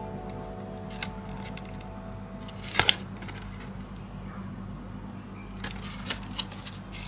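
Stiff paper rustles and crinkles as hands handle it.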